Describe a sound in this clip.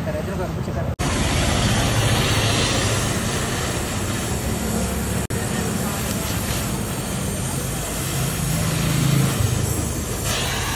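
A gas torch flame hisses and roars steadily.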